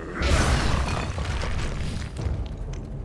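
A magical burst whooshes and crackles.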